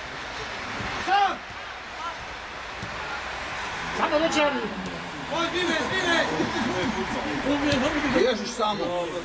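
Young male players shout to each other across an open outdoor field.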